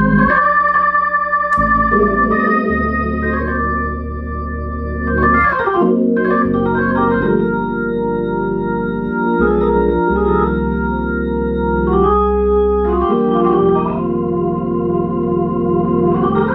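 An electric organ plays sustained chords with a walking bass line.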